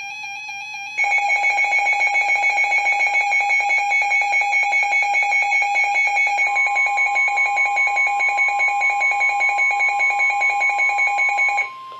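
Weather radios blare a loud, rapidly pulsing alarm beep.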